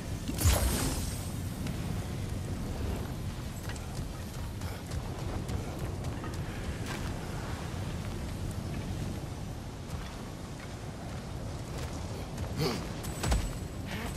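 Heavy footsteps crunch on stone.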